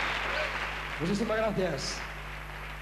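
A man speaks briefly through a microphone in a large hall.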